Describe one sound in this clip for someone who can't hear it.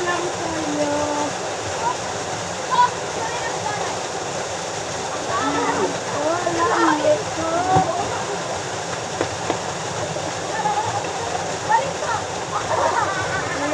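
A river rushes past.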